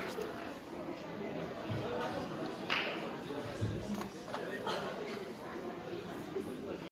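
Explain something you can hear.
An audience murmurs and chatters in an echoing hall.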